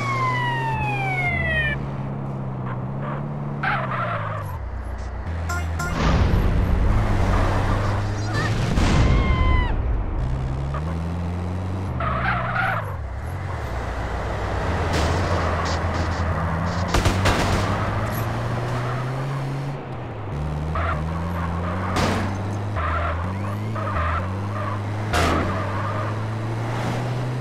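An ambulance engine drones and revs up and down.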